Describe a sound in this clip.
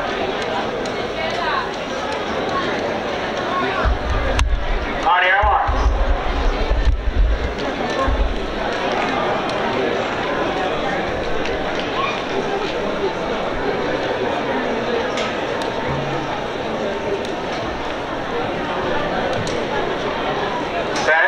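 A crowd chatters and murmurs outdoors in a large open stadium.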